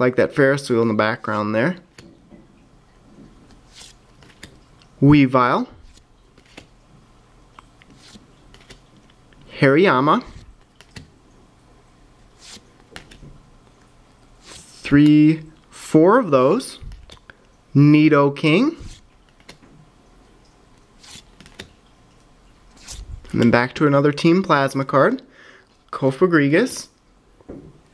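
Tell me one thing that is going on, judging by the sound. Playing cards slide and rustle against each other.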